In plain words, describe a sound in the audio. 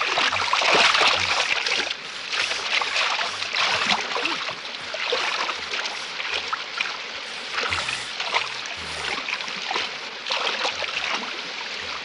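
Water splashes loudly as a man wades through a river.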